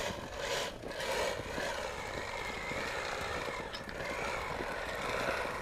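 A sled slides and hisses over snow.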